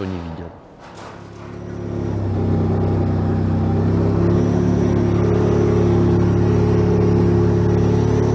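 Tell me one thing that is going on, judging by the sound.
A tank engine rumbles and roars steadily.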